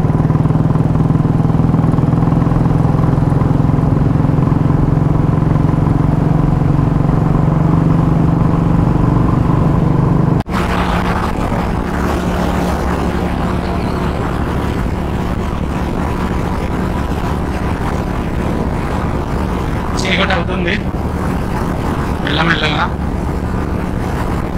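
A motorcycle engine thumps steadily while riding.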